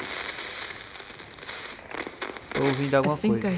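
A radio hisses with static as its dial is turned.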